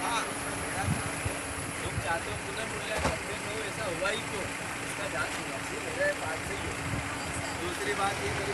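A man speaks loudly to the crowd up close.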